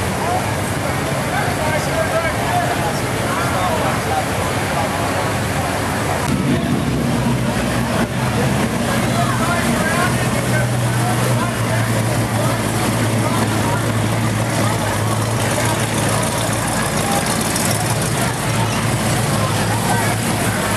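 A crowd of people chatters nearby outdoors.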